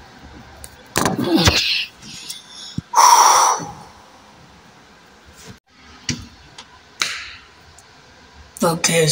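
A young boy speaks in short, loud bursts close to the microphone.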